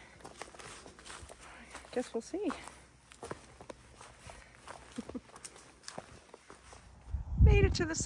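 Footsteps crunch on a dirt trail close by.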